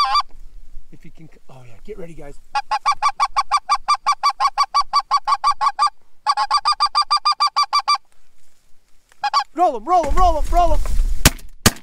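Geese honk in quick, repeated calls.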